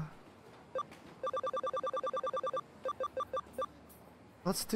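Short menu beeps tick rapidly as a selection cursor moves through a list.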